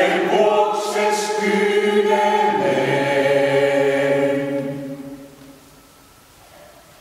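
A mixed choir sings a held chord in a large echoing hall, and the sound dies away slowly.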